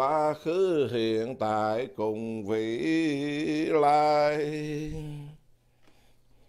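A man chants in a slow, drawn-out voice nearby.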